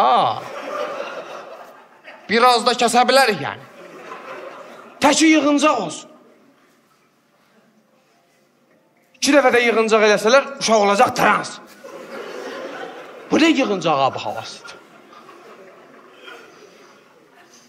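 A young man speaks with animation through a microphone in a large reverberant hall.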